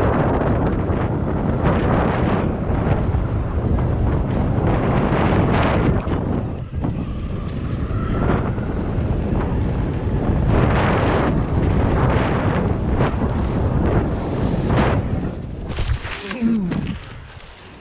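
Wheels rumble and rattle over a bumpy dirt trail.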